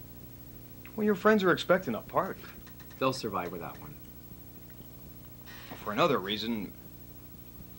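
A middle-aged man speaks calmly and thoughtfully, close to a microphone, with short pauses.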